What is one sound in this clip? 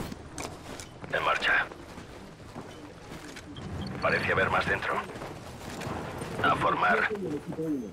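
Footsteps crunch on dirt and gravel nearby.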